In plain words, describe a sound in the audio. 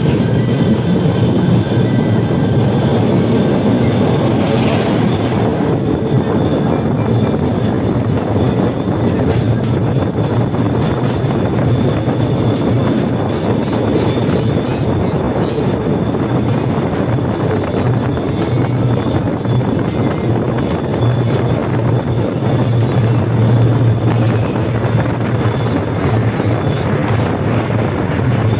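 A small rail cart rumbles and rattles steadily along metal tracks.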